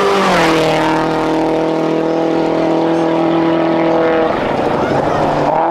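A rally car engine roars loudly as the car speeds along a dirt road.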